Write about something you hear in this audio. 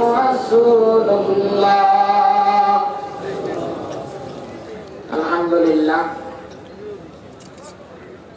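A young man chants melodiously into a microphone, echoing through loudspeakers.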